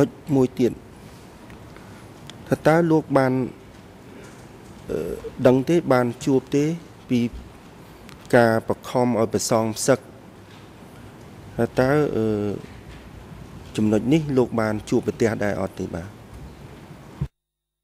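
A man speaks calmly into a microphone in measured phrases.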